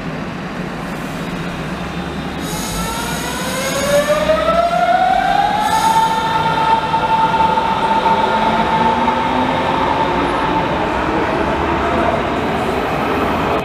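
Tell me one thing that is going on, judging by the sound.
An electric train's motors whine, rising in pitch as it pulls away.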